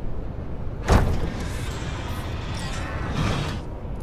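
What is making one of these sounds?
A heavy metal lid thuds and creaks open.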